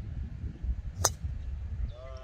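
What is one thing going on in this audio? A golf driver strikes a ball with a sharp crack.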